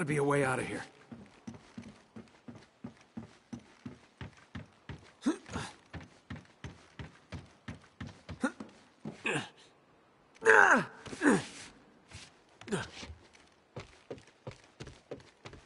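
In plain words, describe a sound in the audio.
Footsteps run quickly over wooden and metal floors.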